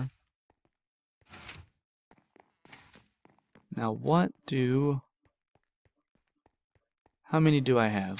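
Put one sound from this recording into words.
Footsteps tap softly on wooden planks.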